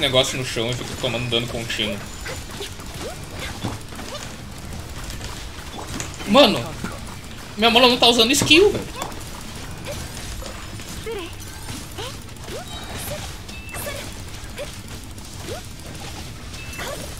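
Magic blasts and strikes crackle and boom in a game battle.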